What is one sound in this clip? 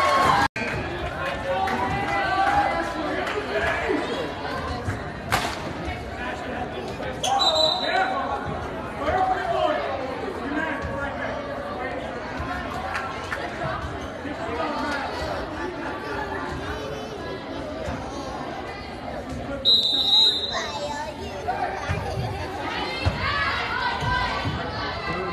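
A crowd of spectators chatters throughout in a large echoing gym.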